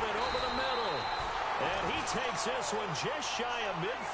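Football players collide and thud during a tackle.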